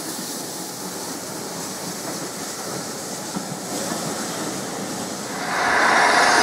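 Railway carriages roll past close by, wheels clattering on the rails.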